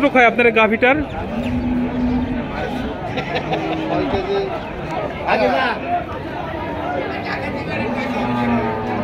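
Other men talk in the background outdoors.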